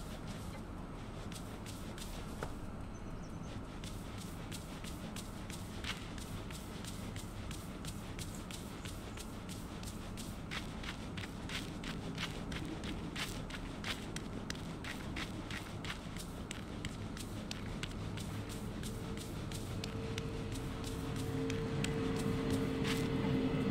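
Light footsteps patter quickly on the ground.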